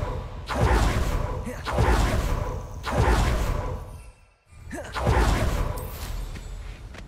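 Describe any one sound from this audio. A magic spell bursts with loud whooshing blasts.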